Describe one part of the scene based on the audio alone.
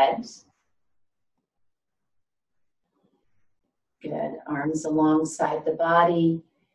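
An older woman speaks calmly and clearly close to a microphone, with short pauses.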